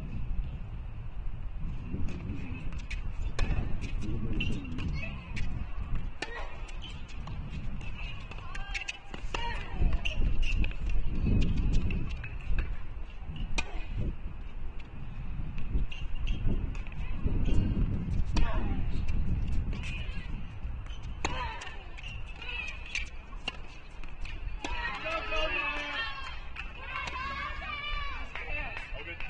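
Tennis shoes squeak and scuff on a hard court.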